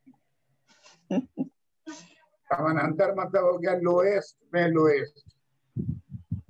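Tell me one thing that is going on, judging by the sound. An elderly man lectures calmly over an online call.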